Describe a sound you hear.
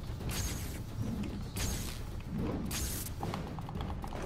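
An electric charge crackles and zaps in short bursts.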